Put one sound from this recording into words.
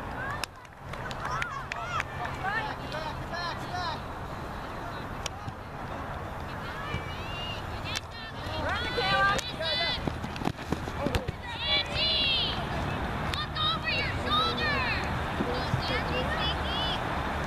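Young girls shout and call out across the field.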